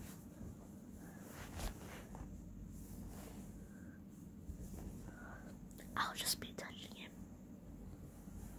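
A young boy speaks softly close to the microphone.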